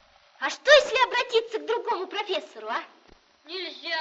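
A woman speaks cheerfully nearby.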